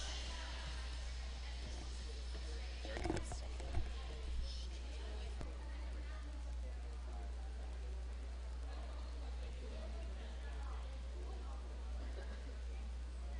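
Young girls chatter and call out in a large echoing hall.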